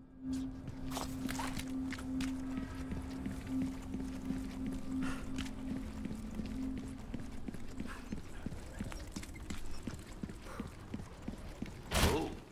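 Footsteps thud on stone at a steady walking pace.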